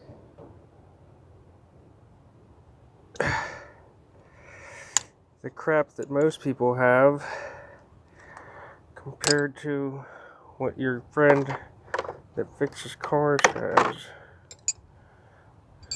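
Small metal tool bits click and rattle in a plastic case.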